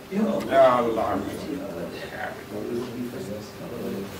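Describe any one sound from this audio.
Elderly men greet each other warmly in low voices close by.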